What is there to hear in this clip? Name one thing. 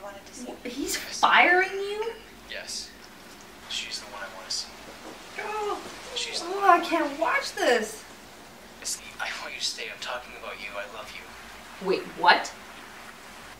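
A young woman talks and exclaims nearby.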